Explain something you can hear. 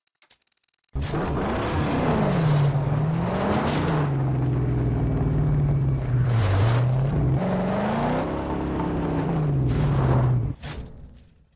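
Tyres rumble and crunch over a rough dirt track.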